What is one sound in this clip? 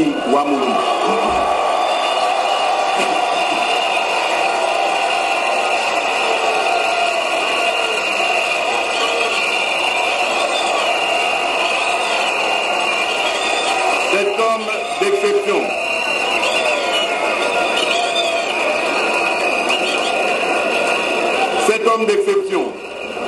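A large crowd cheers and shouts steadily.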